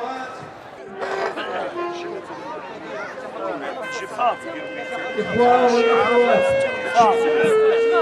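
An elderly man speaks into a microphone through loudspeakers.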